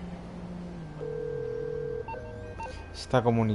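A mobile phone gives a steady calling beep.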